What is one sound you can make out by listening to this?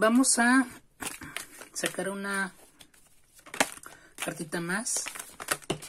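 Playing cards riffle and slap softly as they are shuffled by hand.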